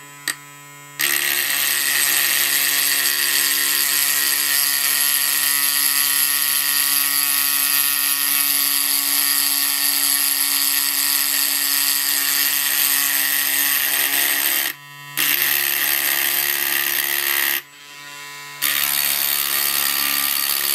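A mini drill bit grinds into a plastic jar.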